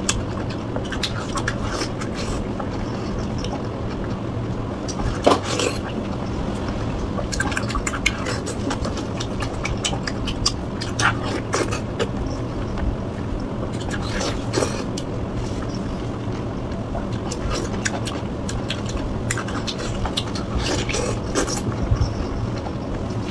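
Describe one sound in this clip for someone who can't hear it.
Crispy pork crackling crunches and cracks as hands tear it apart.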